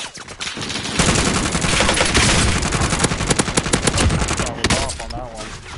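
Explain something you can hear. Rapid rifle shots crack.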